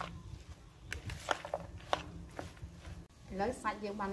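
Hands squish and toss a moist mixture in a plastic bowl.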